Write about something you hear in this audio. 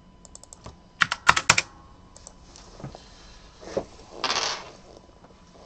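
A man rustles and knocks things about on a desk close by.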